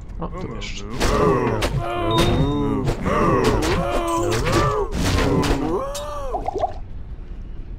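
Creatures growl and cry out as they are hit.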